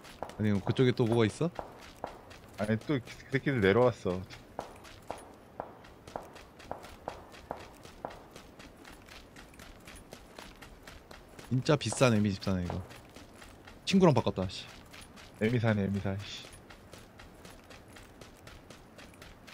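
Footsteps crunch steadily on dry dirt.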